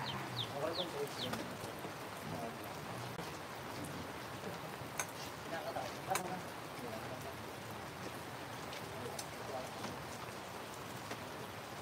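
Light rain patters steadily outdoors.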